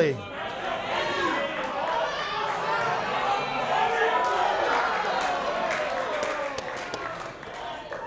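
A crowd cheers and chatters.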